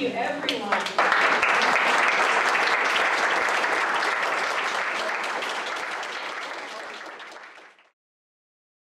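A crowd claps in applause that slowly fades out.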